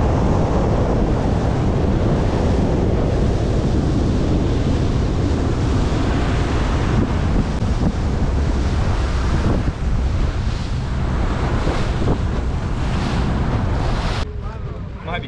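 Wind roars past outdoors as a boat speeds across water.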